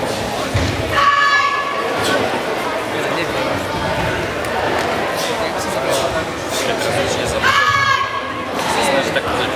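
A young boy shouts sharply and loudly.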